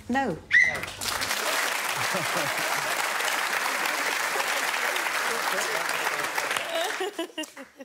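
An audience laughs and applauds loudly in a large hall.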